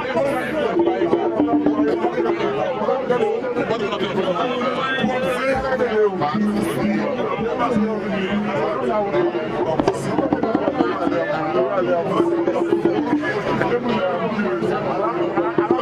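A group of women sings together loudly.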